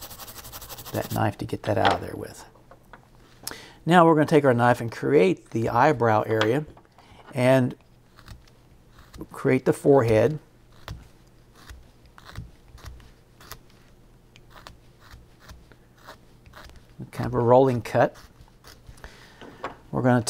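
A small knife scrapes and shaves wood in short strokes.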